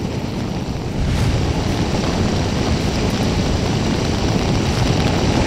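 Fires roar and crackle nearby.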